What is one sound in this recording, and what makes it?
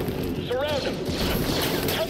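Blasters fire in quick bursts.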